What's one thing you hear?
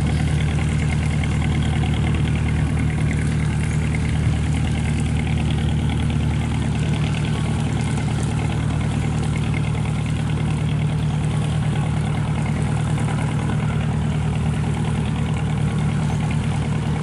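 Water splashes and churns along a moving boat's hull.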